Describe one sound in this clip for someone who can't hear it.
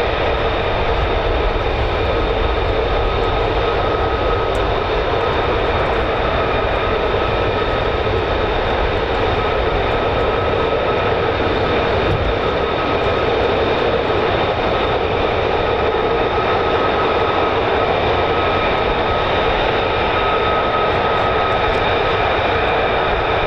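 Jet engines roar and whine steadily at idle nearby, heard outdoors.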